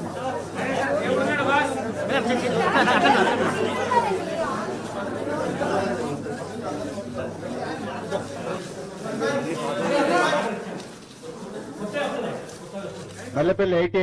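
A crowd of men talk over one another nearby.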